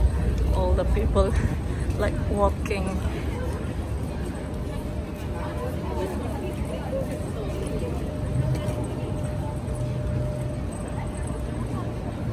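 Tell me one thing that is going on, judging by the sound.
A crowd of men and women murmurs on a busy street.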